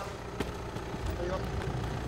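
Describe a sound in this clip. A suitcase's wheels roll over pavement.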